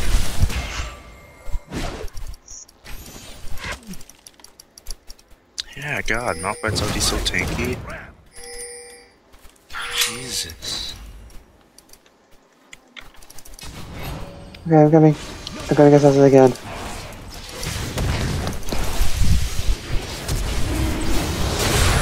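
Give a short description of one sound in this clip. Game sound effects of spells and blows burst and clash in short, sharp bursts.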